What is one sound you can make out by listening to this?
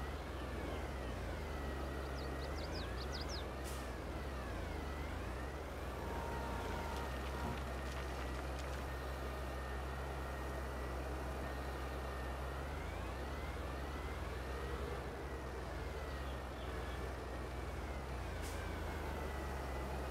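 A tractor engine hums steadily and rises and falls in pitch as it works.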